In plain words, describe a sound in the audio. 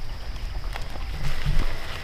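Footsteps rustle through leafy grass.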